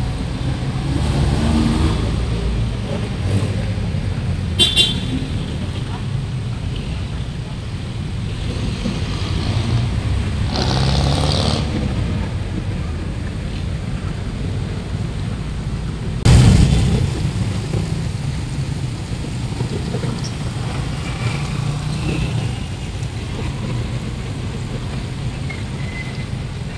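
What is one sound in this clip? City traffic hums and rumbles steadily outdoors.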